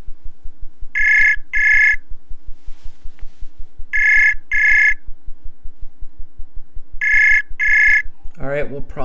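An online call's ringtone beeps in repeated pairs.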